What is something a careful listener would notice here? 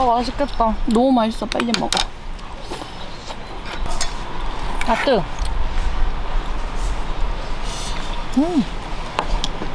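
Chopsticks clink against metal bowls.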